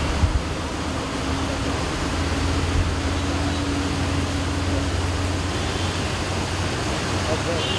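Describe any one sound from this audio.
A vehicle engine rumbles past.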